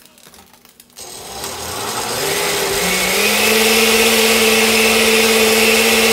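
A blender whirs loudly and steadily, its motor rising in pitch.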